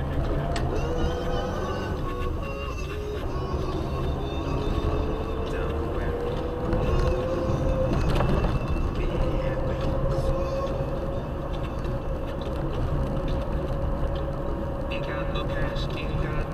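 Tyres swish over a wet road.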